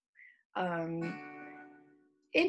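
An acoustic guitar is strummed once and rings out.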